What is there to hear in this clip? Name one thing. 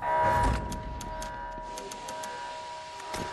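Short electronic menu clicks tick several times in quick succession.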